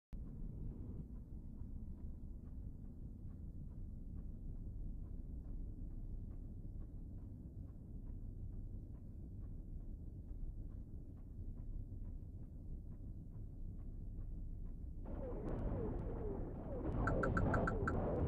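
A spaceship engine hums with a low, steady rumble.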